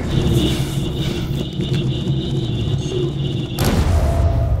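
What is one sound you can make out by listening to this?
Footsteps thud on a hard tiled floor.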